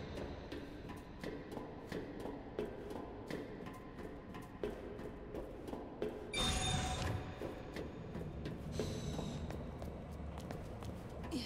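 Footsteps clank steadily on a metal walkway.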